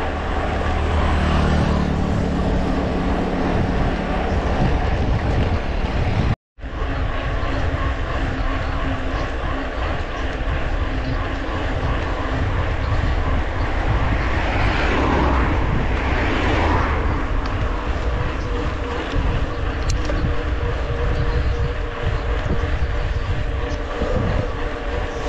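Bicycle tyres hum and rattle on the road.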